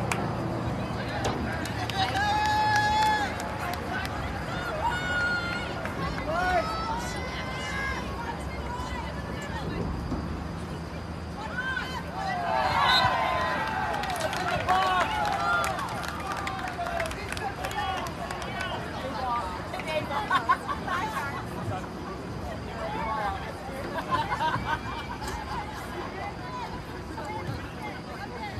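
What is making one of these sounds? Spectators chatter and call out close by, outdoors.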